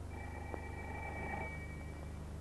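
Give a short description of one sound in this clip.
A telephone rings with a trilling bell.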